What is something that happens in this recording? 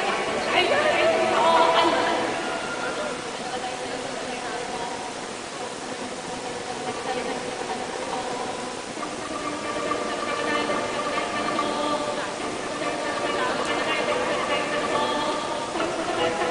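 A woman sings into a microphone over loudspeakers in a large open space.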